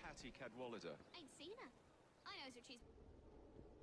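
A young boy answers.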